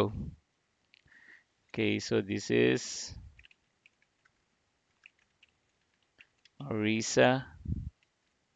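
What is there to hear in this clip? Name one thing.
A young man speaks calmly and close into a microphone, in short bursts.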